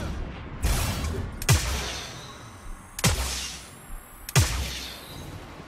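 Explosions boom loudly in a game.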